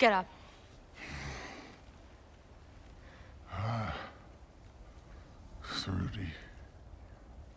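A man groans and grunts in a deep voice.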